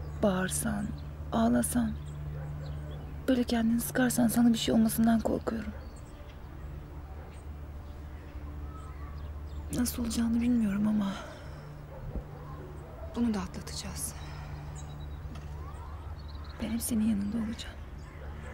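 A young woman speaks softly and sadly, close by.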